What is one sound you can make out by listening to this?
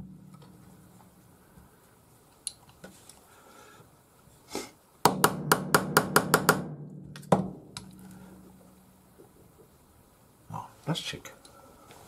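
Metal parts clink against each other.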